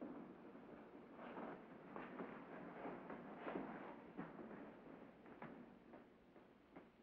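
A crowd murmurs and shuffles in a room.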